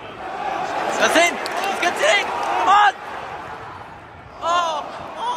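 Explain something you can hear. Men in the crowd shout and chant nearby.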